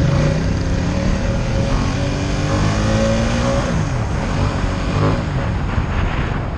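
Other motorbikes hum by nearby.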